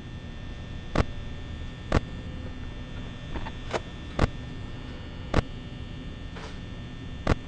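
Buttons click sharply now and then.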